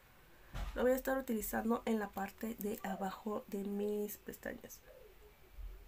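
A young woman talks calmly and close into a microphone.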